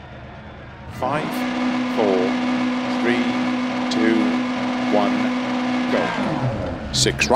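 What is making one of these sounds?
A rally car engine revs hard and loud.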